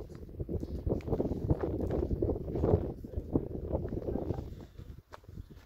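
Wind gusts and rumbles outdoors, strongest early on.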